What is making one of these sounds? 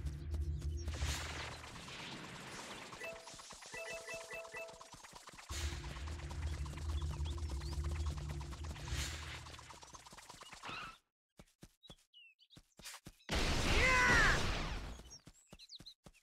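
A low rushing whoosh swells and fades.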